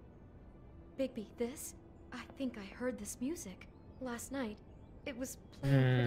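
A woman speaks in a worried, hesitant voice.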